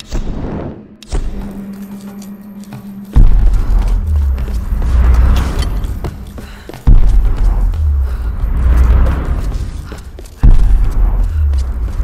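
Footsteps crunch over scattered debris.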